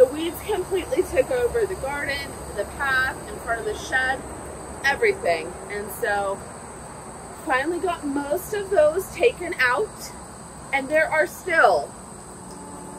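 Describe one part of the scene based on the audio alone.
A woman talks with animation close by, outdoors.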